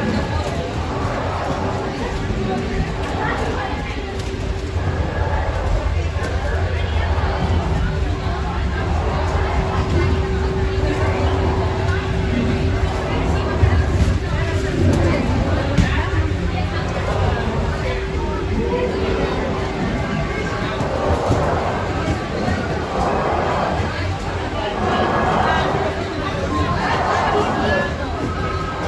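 A crowd of people chatter nearby in a large echoing room.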